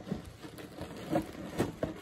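Paper crinkles.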